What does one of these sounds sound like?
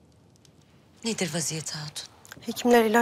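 A woman asks a short question calmly, close by.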